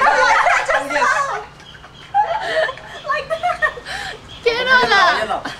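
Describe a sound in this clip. A young woman laughs and talks cheerfully close by.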